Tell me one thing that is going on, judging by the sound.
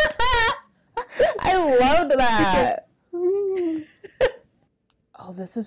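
A second young woman talks with animation.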